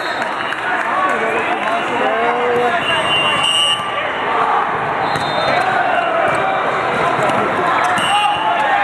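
A crowd of men shouts and cheers in a large echoing hall.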